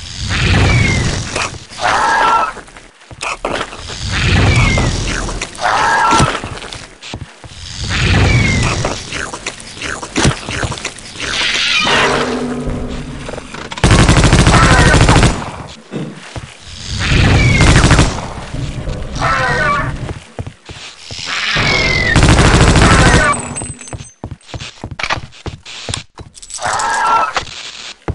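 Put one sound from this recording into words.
A creature screeches and growls repeatedly.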